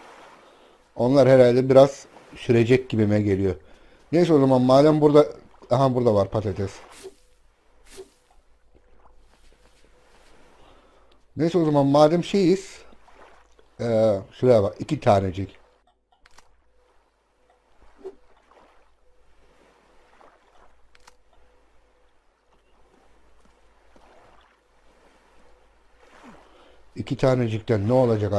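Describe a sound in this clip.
A man talks with animation into a microphone, close by, in short bursts.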